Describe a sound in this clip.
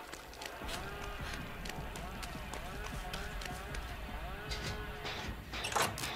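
Quick footsteps crunch on rough ground.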